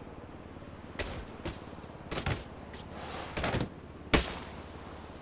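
A body thuds and clangs against a metal tower as it falls.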